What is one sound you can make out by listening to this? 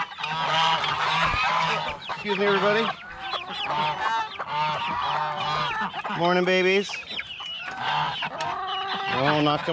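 A flock of domestic ducks quacks outdoors.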